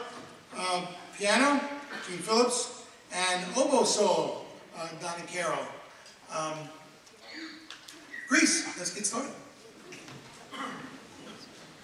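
An elderly man speaks with animation into a microphone, heard through loudspeakers in a large hall.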